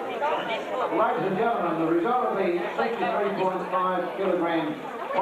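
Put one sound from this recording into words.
A man announces loudly over a loudspeaker.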